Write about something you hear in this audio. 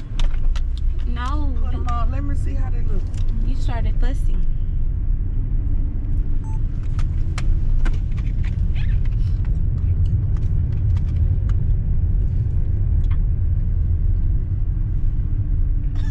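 Small knocks and clicks sound inside a car.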